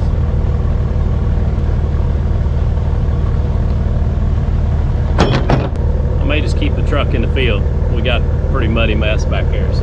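A mower engine idles steadily with a low rumble.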